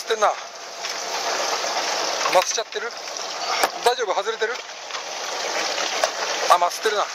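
Water washes against a boat's hull.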